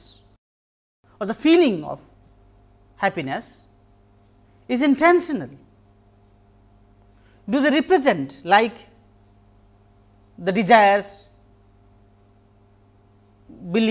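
A man speaks calmly and deliberately into a close microphone, in short phrases with pauses.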